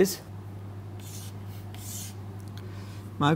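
Chalk scrapes and taps on a board.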